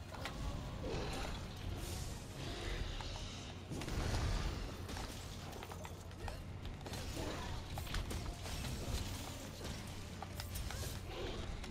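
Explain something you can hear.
Blades clang and slash against a hard hide.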